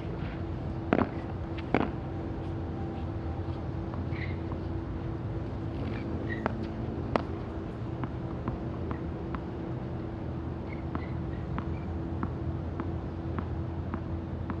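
A tennis ball bounces on the ground as a player bounces it before serving.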